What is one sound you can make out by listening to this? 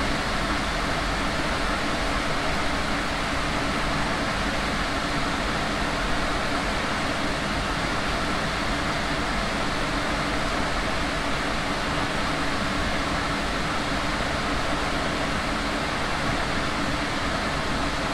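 Tram wheels clatter over rail joints.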